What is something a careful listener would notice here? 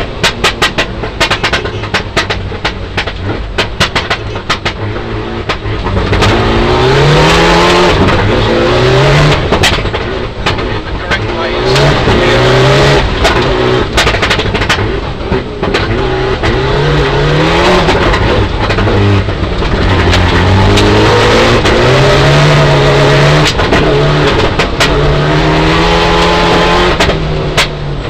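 A rally car engine roars and revs hard up and down.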